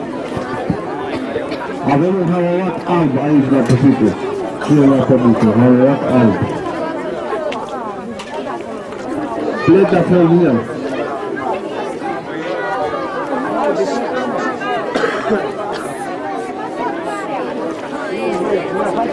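A crowd of children and adults chatters in the background.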